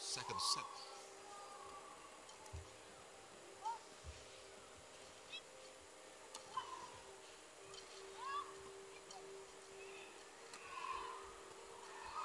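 Shuttlecock hits crack sharply off rackets in a quick rally.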